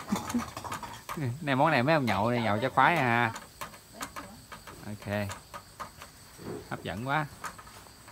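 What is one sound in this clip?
Food sizzles gently in a hot wok.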